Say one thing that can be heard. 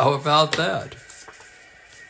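Paper cards rustle as they are handled.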